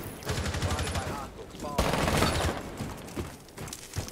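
Gunshots fire in rapid bursts, loud and close.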